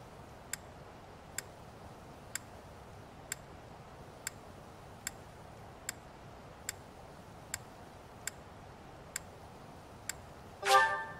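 A menu cursor ticks with short clicks as it scrolls down a list.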